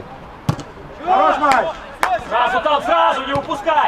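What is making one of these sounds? Male players shout loudly outdoors.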